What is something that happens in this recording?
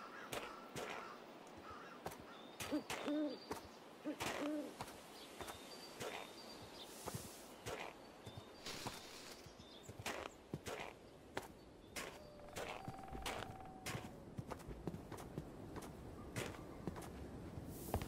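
Footsteps crunch steadily over snow.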